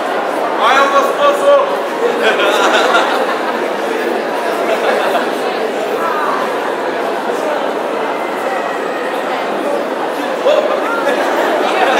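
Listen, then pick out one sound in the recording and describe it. Pop music plays over loudspeakers.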